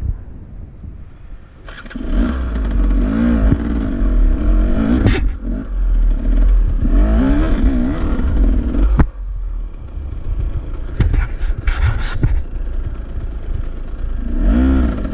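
A motorcycle engine revs up and down in bursts.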